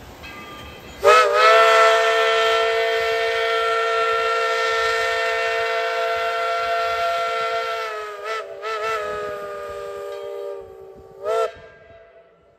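A steam locomotive whistle blows loudly in long and short blasts.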